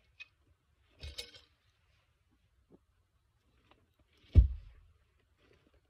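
Boots thud onto a log.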